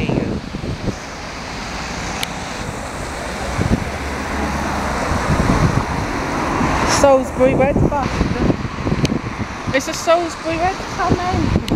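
Traffic passes by on a wet road.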